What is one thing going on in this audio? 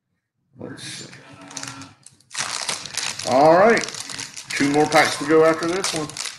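Plastic packaging crinkles in gloved hands.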